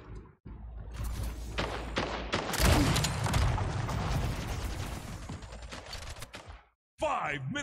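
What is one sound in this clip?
Rapid gunfire crackles and bangs.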